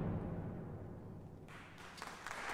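An orchestra's last chord fades away.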